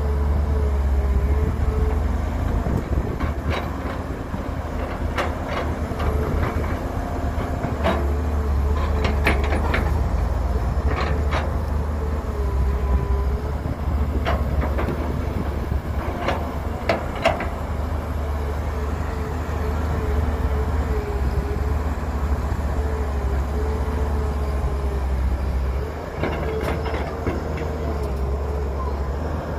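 A diesel excavator engine rumbles steadily and whines as it works.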